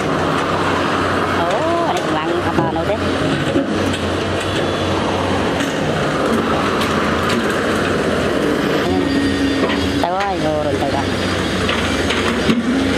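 A heavy excavator engine rumbles steadily nearby.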